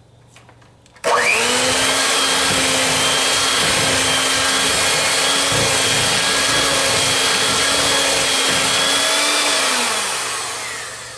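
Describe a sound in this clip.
An electric hand mixer whirs steadily as it beats a thick batter, then winds down.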